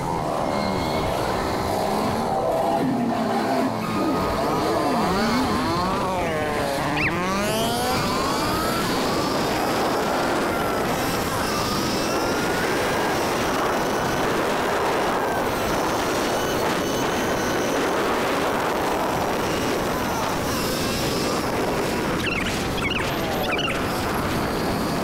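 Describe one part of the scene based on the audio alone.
Wind rushes steadily past the rider.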